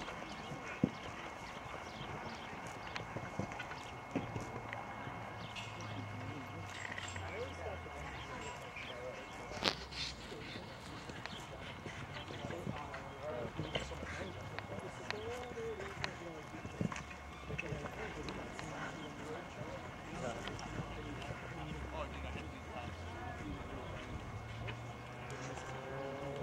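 A horse's hooves thud on grass as it canters.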